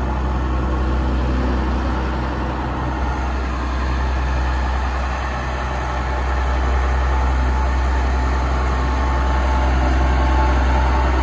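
A tractor's diesel engine rumbles steadily as the tractor drives slowly.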